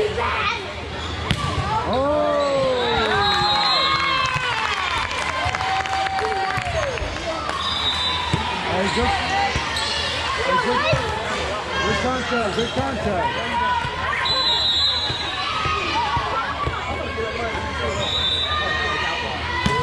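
A volleyball is struck hard with a hand.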